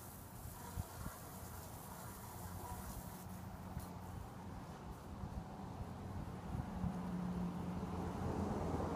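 A lawn mower engine hums steadily in the distance, growing a little louder.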